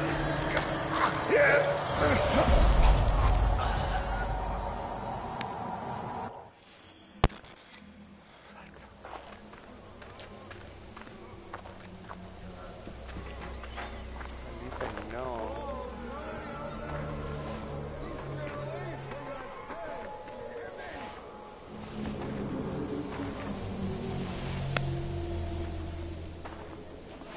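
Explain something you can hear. A man talks into a microphone.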